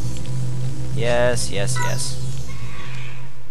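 A shimmering magical chime swirls and rings out.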